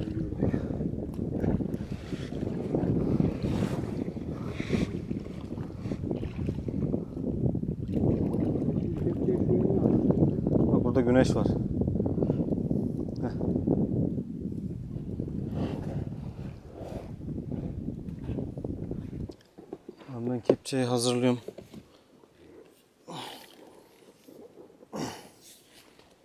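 Oars splash and dip into the water in a steady rowing rhythm.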